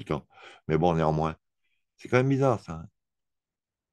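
A young woman speaks with animation, heard through a small speaker.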